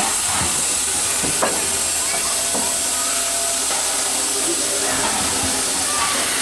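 A steam locomotive chuffs as it pulls away.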